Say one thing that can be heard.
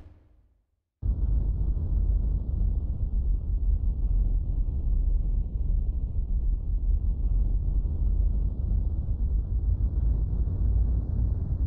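Strong wind roars steadily.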